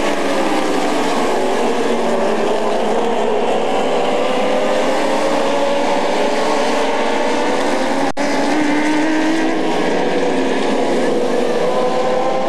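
A pack of dwarf cars roars around an asphalt oval, engines rising and falling in pitch.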